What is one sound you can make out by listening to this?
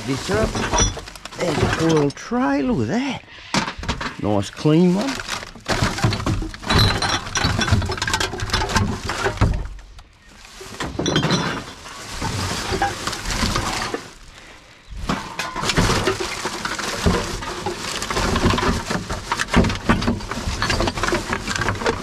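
Rubbish items clatter and knock together inside a bin.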